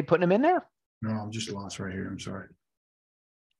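A second man speaks briefly over an online call.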